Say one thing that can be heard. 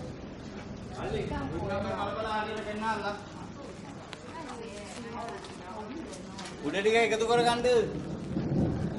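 Young men shout and call out nearby, outdoors.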